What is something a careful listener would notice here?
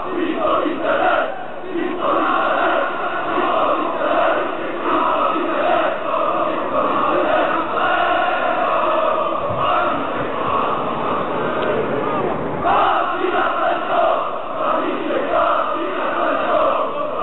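A large crowd of men chants loudly in unison outdoors.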